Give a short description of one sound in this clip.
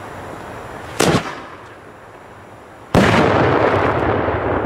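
A firework explodes with a loud bang outdoors.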